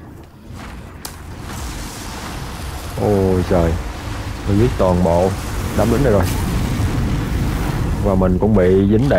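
A blast of fire roars and crackles.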